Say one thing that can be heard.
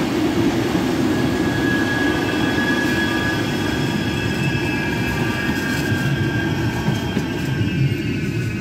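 A tram rolls past close by, its wheels humming on the rails.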